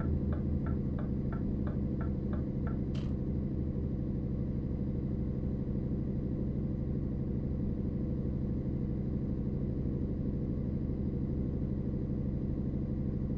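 A truck engine drones steadily while driving at speed.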